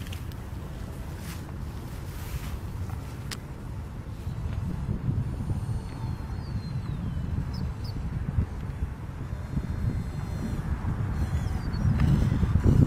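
A small model airplane engine buzzes overhead, growing louder as it approaches.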